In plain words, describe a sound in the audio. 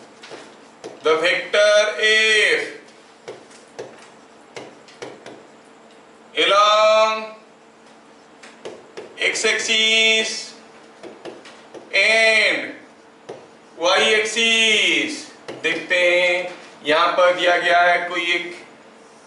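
A man speaks calmly and clearly, close by, in short phrases.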